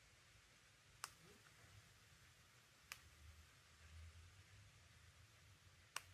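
A remote control clicks as buttons are pressed.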